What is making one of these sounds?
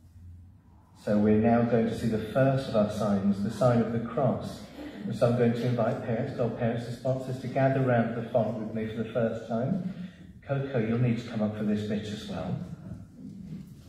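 A man speaks loudly and clearly in an echoing hall.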